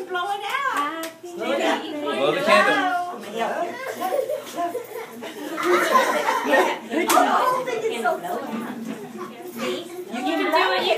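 Several people sing together nearby, with women's voices leading.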